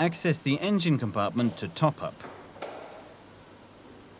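A car bonnet is lifted open with a soft clunk.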